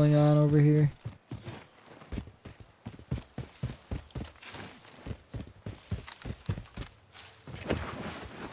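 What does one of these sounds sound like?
Footsteps thud quickly on the ground as a game character runs.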